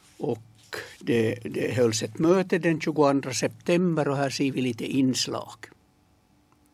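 An elderly man speaks calmly and close into a microphone.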